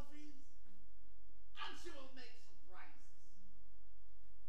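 A man speaks loudly on a stage, heard from a distance in an echoing hall.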